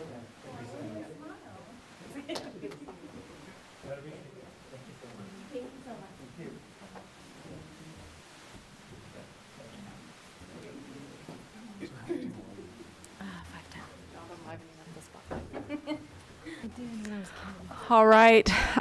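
People chatter quietly in a large room.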